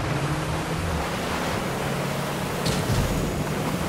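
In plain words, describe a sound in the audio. A boat engine roars as the boat speeds across water.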